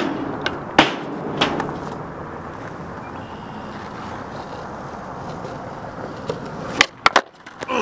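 Skateboard wheels roll and rumble over rough pavement.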